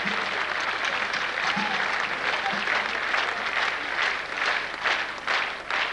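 A large crowd applauds loudly in a big hall.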